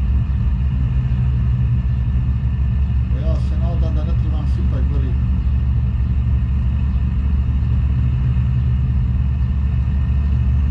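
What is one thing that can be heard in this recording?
A truck engine hums with a steady low drone.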